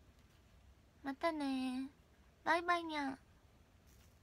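A young woman speaks in a high, cute sing-song voice close to a microphone, in two short bursts.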